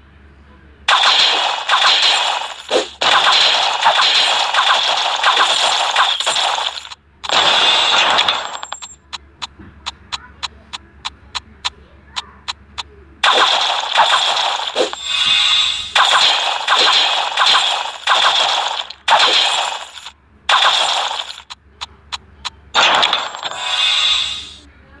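Game weapons fire and strike enemies in loud, crackling bursts.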